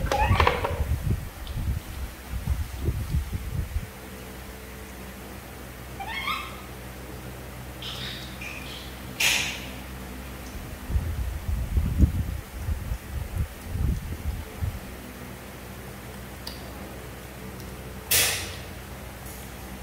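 Young macaques chew juicy mango with wet, smacking bites.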